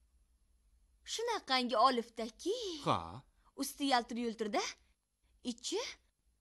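A young woman speaks earnestly and close by.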